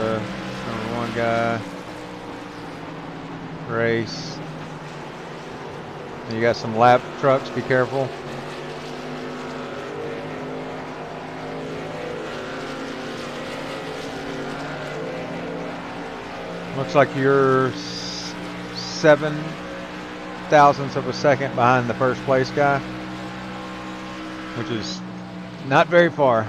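Race car engines drone steadily as the cars circle a track.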